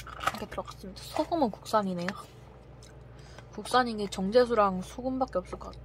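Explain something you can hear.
A metal spoon scrapes and stirs thick porridge in a pouch.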